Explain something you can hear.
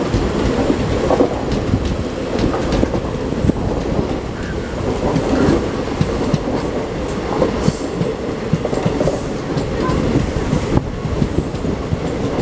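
Wheels clack over rail joints in quick knocks.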